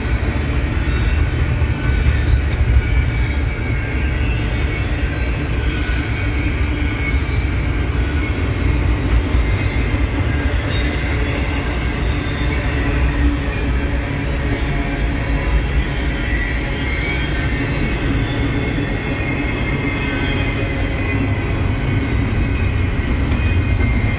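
Steel wheels squeal and clatter on the rails.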